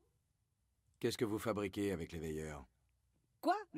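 A man speaks calmly and firmly.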